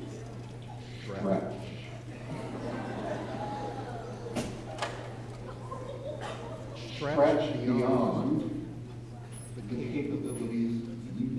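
An elderly man speaks through a microphone and loudspeakers in a large echoing hall.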